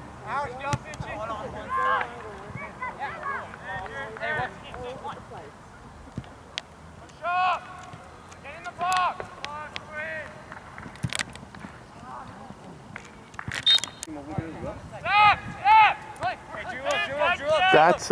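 A soccer ball thuds as it is kicked.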